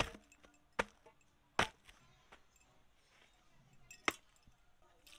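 A wooden pestle thuds sharply into a metal bowl.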